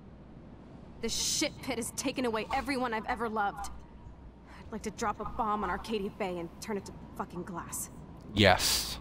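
A young woman speaks bitterly and with feeling.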